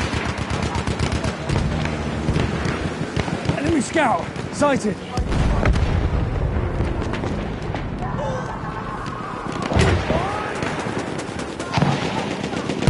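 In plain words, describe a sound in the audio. Rapid gunfire crackles throughout.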